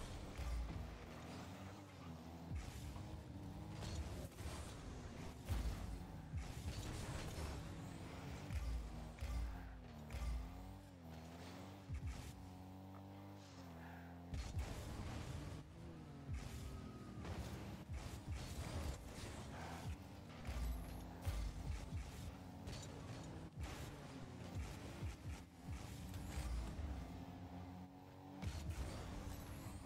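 A ball is struck with a hollow thump.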